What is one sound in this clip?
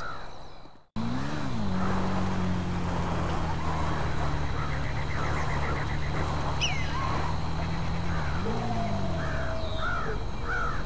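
A motorbike engine revs up, then hums steadily, and revs again.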